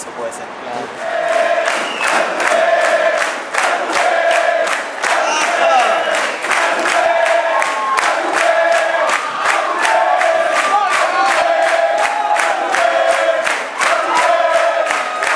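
A rock band plays loudly live.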